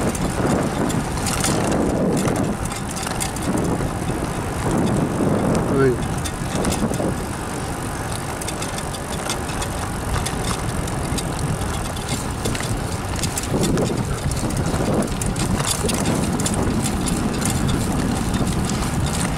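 Bicycle tyres roll along a paved path.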